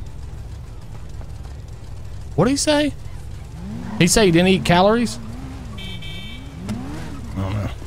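A motorcycle engine hums and revs as it rides off.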